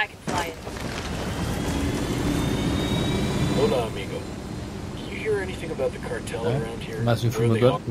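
A helicopter engine starts up and whines steadily.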